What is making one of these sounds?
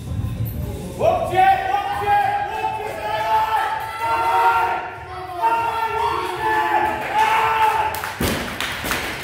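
A man shouts loud encouragement nearby in an echoing room.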